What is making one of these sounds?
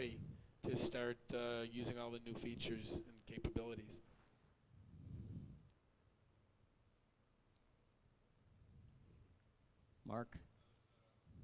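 A man speaks with animation into a microphone, heard through loudspeakers in a large hall.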